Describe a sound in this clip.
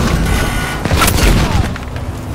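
An explosion bursts nearby with a heavy blast.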